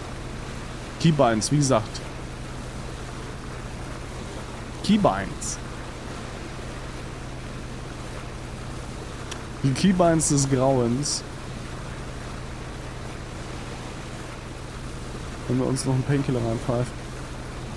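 A man talks in short bursts, close to a microphone.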